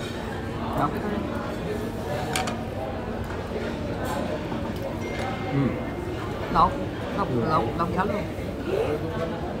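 Cutlery clinks lightly against plates.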